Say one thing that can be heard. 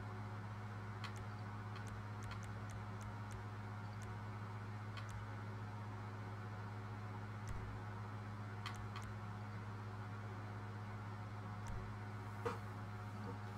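Short soft clicks tick now and then as menu options are chosen.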